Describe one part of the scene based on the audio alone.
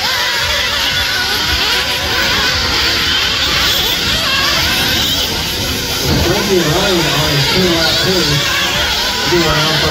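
Small electric motors whine as remote-control cars race over dirt.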